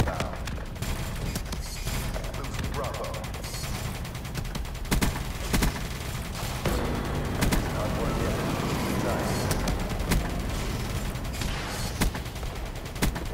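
Explosions rumble low and deep.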